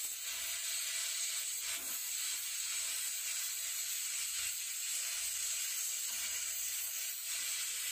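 A welding arc crackles and sputters.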